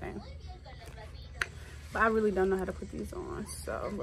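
Packaging paper crinkles in a young woman's hands.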